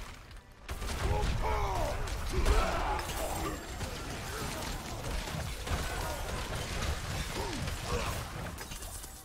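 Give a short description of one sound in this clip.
Monsters roar and screech.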